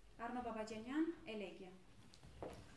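A woman sings a high, sustained phrase in an echoing hall.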